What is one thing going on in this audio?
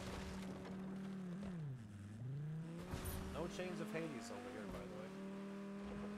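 Water splashes as a car drives through it.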